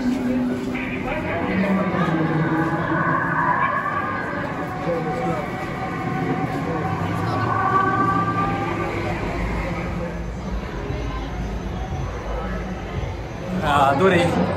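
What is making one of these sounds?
A subway train rumbles and screeches along the tracks.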